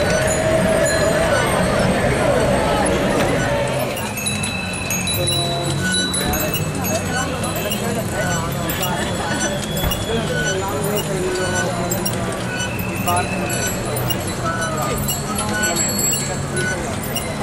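A crowd of young men and women chatter and call out nearby, outdoors.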